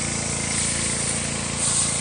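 Water sprays hard from a hose.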